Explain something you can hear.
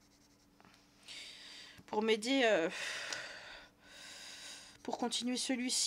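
A pencil scratches on paper.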